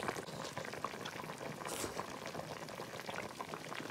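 A woman slurps noodles.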